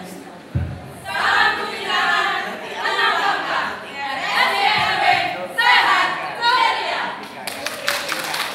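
A group of young women sing together in chorus.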